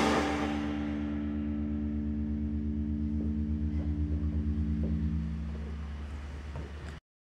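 A bass guitar hums a low droning note.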